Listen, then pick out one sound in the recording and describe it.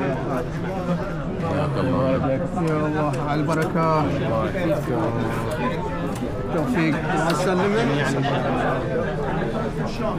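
A man speaks warmly while greeting others up close.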